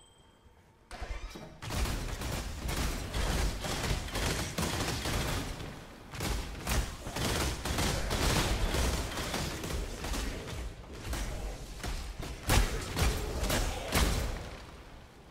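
Game spells crackle and blast in rapid bursts.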